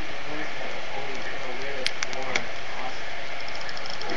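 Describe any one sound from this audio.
A thumb clicks the buttons of a small music player.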